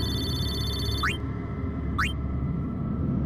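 A short electronic chime sweeps quickly upward, twice.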